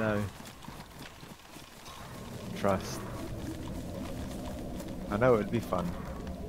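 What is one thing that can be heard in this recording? Footsteps rustle quickly through tall grass.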